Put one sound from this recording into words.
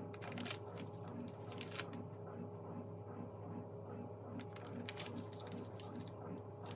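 Paper rustles and crinkles in someone's hands.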